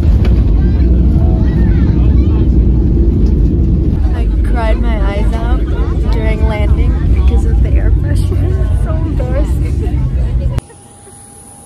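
A jet engine roars loudly inside an aircraft cabin.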